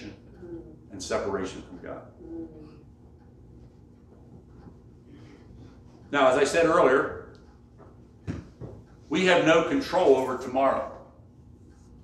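An elderly man preaches with emphasis in a small echoing hall, pausing between phrases.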